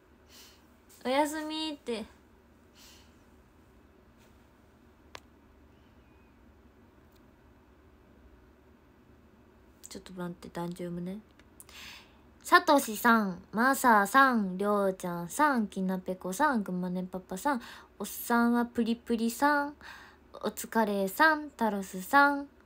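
A young woman speaks with animation close to a phone microphone.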